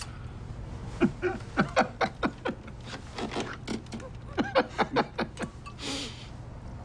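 A man chuckles quietly.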